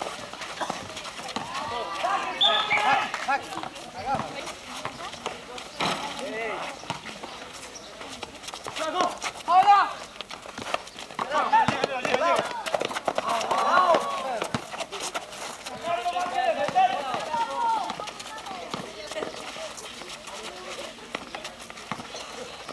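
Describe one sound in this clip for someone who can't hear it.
A basketball bounces on hard ground.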